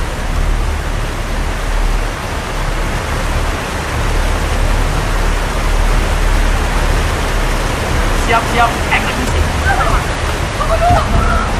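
Floodwater rushes and roars.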